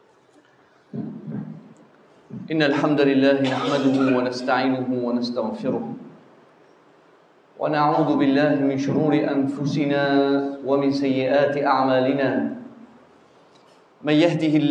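A man chants loudly through a microphone in long, drawn-out phrases.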